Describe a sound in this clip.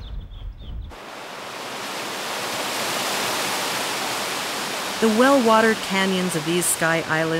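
A small waterfall rushes and splashes over rocks.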